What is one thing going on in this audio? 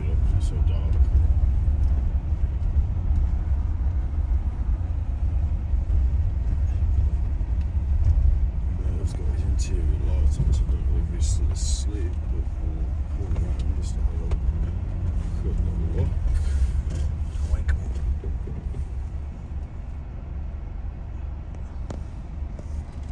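A vehicle engine rumbles steadily from inside the cab.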